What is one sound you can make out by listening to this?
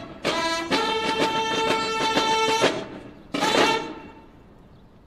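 Bugles play a loud fanfare.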